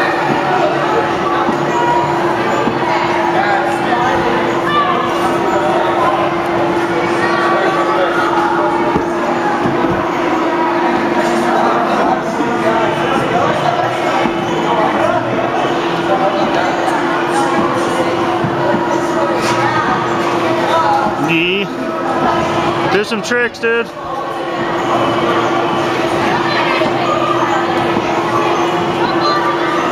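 Many children chatter and call out in a large echoing hall.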